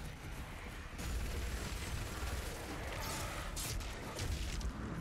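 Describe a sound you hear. Heavy guns fire rapidly.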